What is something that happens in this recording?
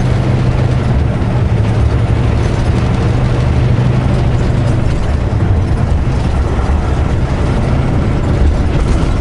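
A car engine hums steadily from inside the cab.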